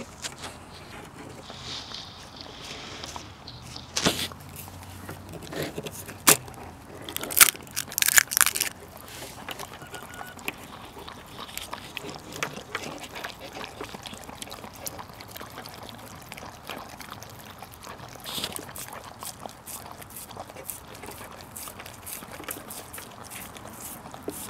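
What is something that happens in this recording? A dog licks and laps wetly at a raw egg, close up.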